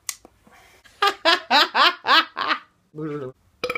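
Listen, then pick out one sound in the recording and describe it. A young man shouts and laughs excitedly.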